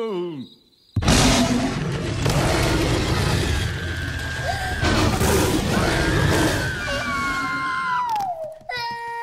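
A large monster roars loudly.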